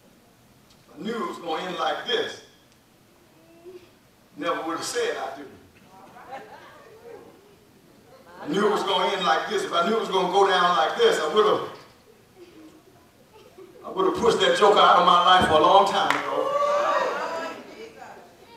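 A man preaches with emphasis through a microphone in an echoing hall, pausing between phrases.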